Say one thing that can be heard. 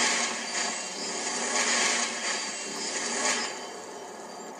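A magic spell crackles and hisses.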